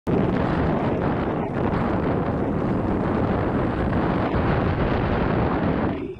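Bike tyres rumble and crunch over a rough dirt trail.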